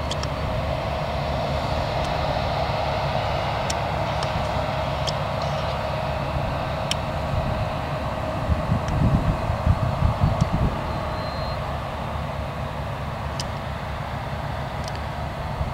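Heavy farm engines rumble and hum steadily outdoors.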